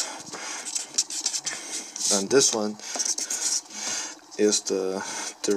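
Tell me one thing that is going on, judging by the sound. A pen scratches across paper up close.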